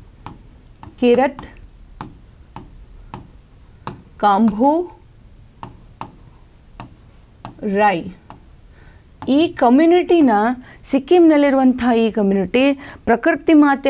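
A young woman speaks clearly into a microphone, explaining at a measured pace with pauses.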